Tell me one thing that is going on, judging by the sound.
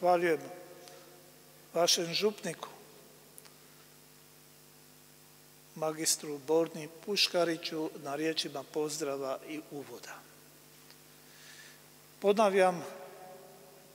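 An elderly man speaks slowly and solemnly into a microphone in a large echoing hall.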